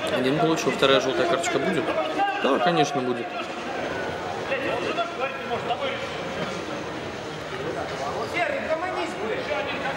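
Men talk with animation in a large echoing hall.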